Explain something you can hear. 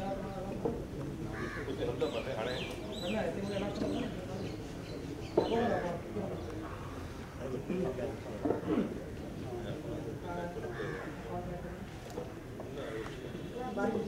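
Wooden logs knock together as they are stacked.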